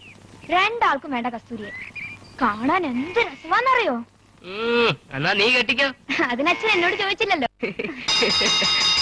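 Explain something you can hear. A teenage boy speaks with animation, close by.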